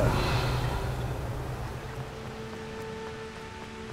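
Footsteps run quickly across stone paving.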